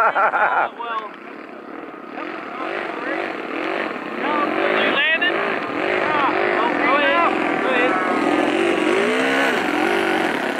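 A model airplane engine whines overhead, rising and falling in pitch.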